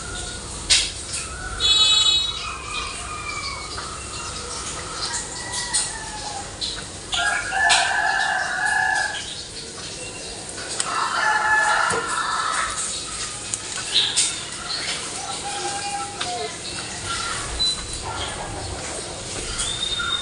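A soft foam toy squishes and creaks as hands squeeze it.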